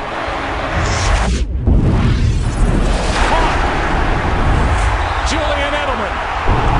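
A large stadium crowd roars loudly.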